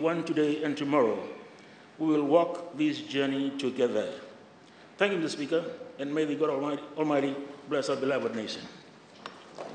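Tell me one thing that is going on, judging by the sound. An elderly man speaks calmly into a microphone in a large hall.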